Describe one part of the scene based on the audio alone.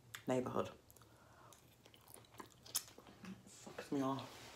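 A young woman chews and smacks her lips wetly.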